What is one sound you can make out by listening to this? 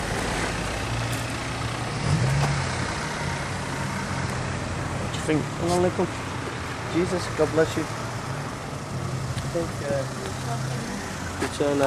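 Car engines hum as vehicles drive slowly past on a street.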